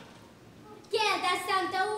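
A second young boy answers with animation.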